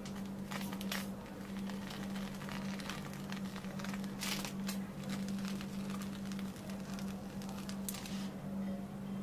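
Whipped cream hisses from a dispenser in short bursts.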